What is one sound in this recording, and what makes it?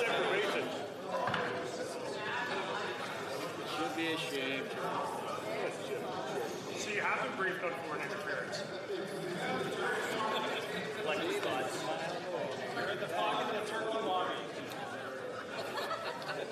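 An elderly man calls for order over a microphone.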